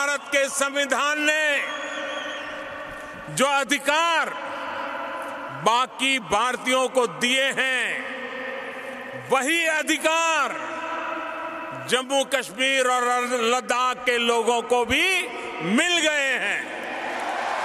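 An elderly man speaks forcefully into a microphone over loudspeakers, echoing through a large arena.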